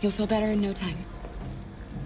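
A young woman speaks calmly and warmly, close by.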